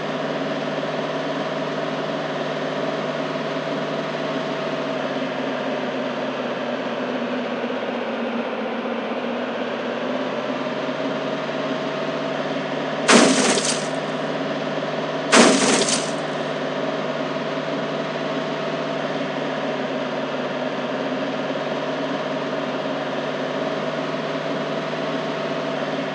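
A monster truck engine drones steadily.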